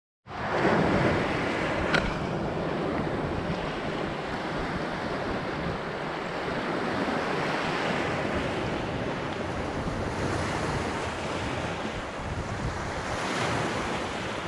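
Small waves wash onto a beach and roll back.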